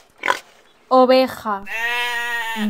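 A sheep bleats.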